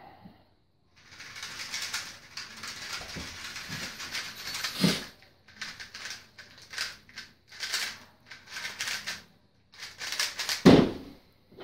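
A puzzle cube clicks and rattles as it is turned quickly.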